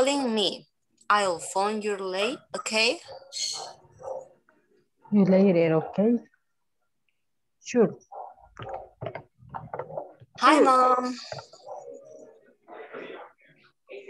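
A woman speaks animatedly over an online call.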